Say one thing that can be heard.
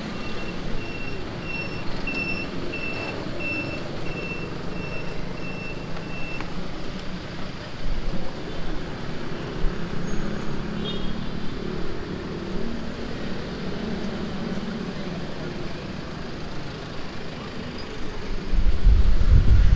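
City traffic rumbles steadily outdoors at night.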